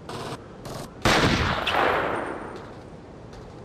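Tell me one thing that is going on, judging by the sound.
A sniper rifle fires a single shot.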